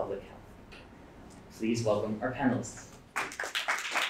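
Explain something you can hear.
A man speaks into a microphone in a calm, formal voice.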